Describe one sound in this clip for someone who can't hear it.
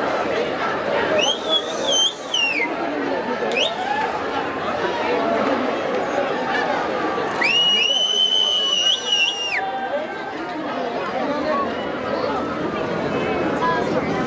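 A large crowd of young men and women talks and shouts all around, outdoors.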